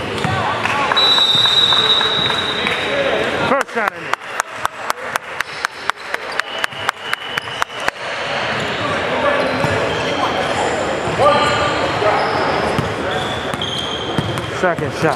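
Young players call out and chatter in an echoing hall.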